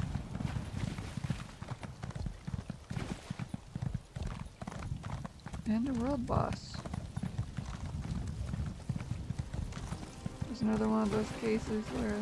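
Water splashes under a horse's hooves.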